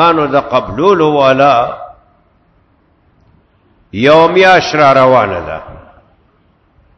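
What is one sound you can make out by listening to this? An elderly man speaks with feeling through a microphone, in two phrases.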